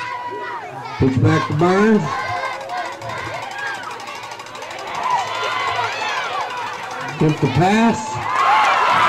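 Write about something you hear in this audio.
A man close by shouts loudly with excitement.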